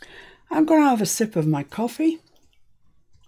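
A middle-aged woman speaks with animation, close to a microphone.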